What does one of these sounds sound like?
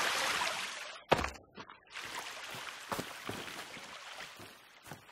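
Footsteps thud and rustle through dry grass.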